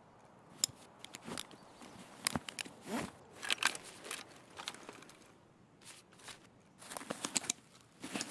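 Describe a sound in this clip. A bandage wrapper crinkles and rustles as hands tear it open.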